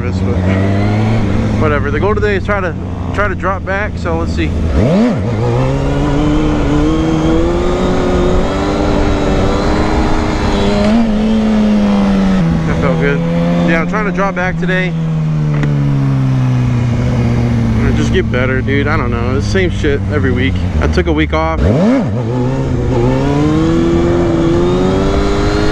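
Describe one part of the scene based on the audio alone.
A motorcycle engine revs up and down loudly as it rides.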